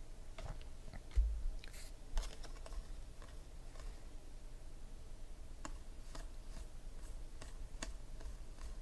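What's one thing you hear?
Trading cards flick and slide against each other as they are shuffled by hand.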